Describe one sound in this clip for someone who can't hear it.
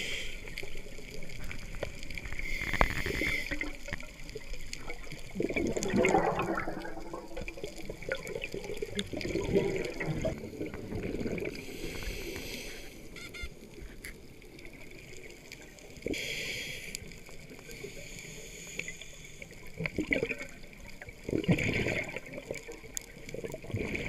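Air bubbles gurgle and rumble as a diver breathes out underwater.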